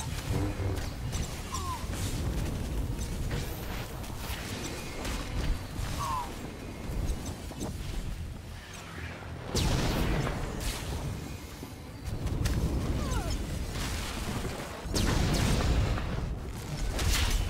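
A lightsaber hums and clashes in a fight.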